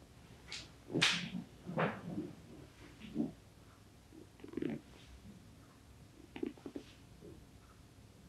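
Hands pat and slap on a man's back and legs during a massage.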